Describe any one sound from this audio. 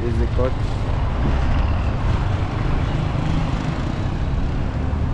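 A car engine rumbles as the car drives closer.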